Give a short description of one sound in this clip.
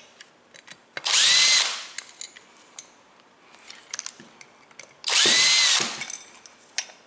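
A cordless drill whirs in short bursts, speeding up and slowing down.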